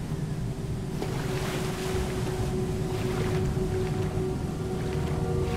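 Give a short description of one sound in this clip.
Water splashes as a figure wades and swims through it.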